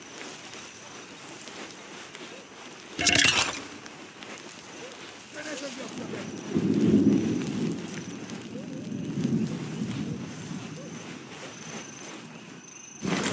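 Footsteps crunch softly through snow.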